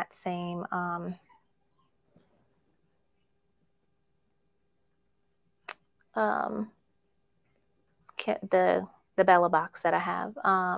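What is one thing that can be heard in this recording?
A woman speaks calmly into a close microphone, pausing now and then.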